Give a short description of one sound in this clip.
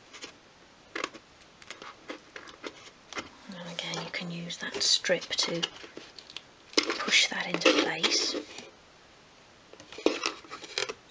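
Small wooden pieces tap and click against a wooden box.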